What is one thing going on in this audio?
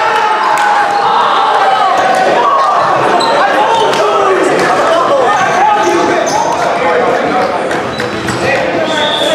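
A volleyball smacks off players' hands and arms.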